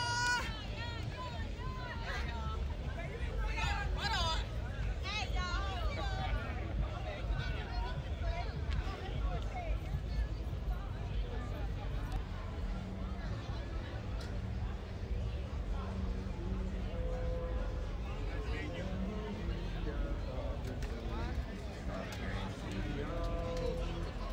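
Young women talk and laugh nearby, outdoors at night.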